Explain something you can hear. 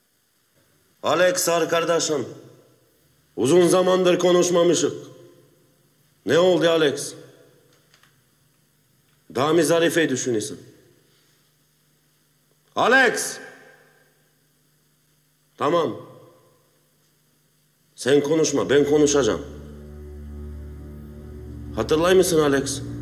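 A man speaks slowly and tensely in short phrases, close by.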